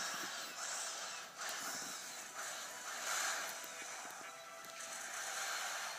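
Video game sound effects and music play from a handheld console's small speakers.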